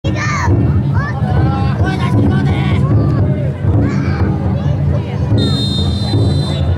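A crowd of men chant and shout together loudly outdoors.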